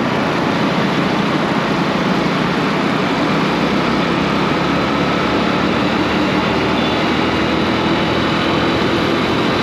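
Traffic drones along a busy road.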